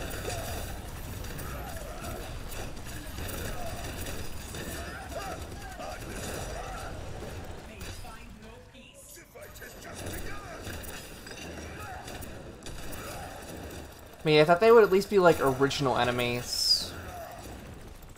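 Energy beams zap and crackle.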